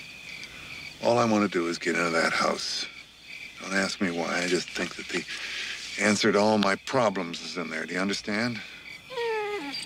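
A man speaks quietly and intently, close by.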